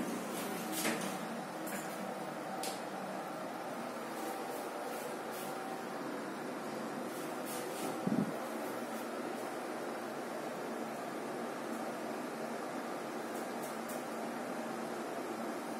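An elevator hums steadily as it rides upward.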